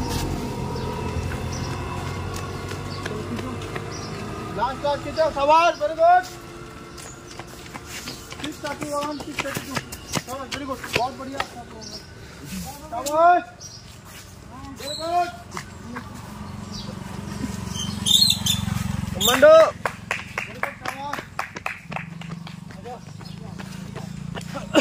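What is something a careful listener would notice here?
Running footsteps slap on a paved road.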